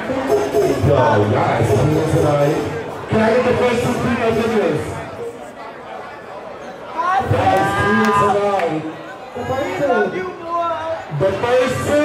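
A man calls out loudly over a microphone.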